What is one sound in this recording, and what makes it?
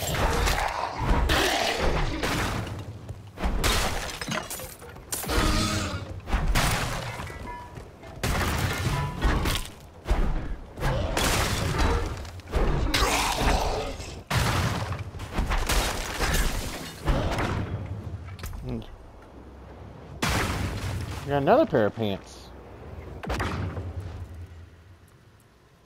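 Weapons strike and slash in quick, loud bursts.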